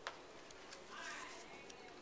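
A paper card rustles as hands set it down.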